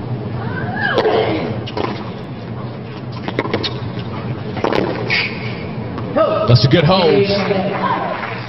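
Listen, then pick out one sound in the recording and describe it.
A tennis ball is struck sharply back and forth with rackets.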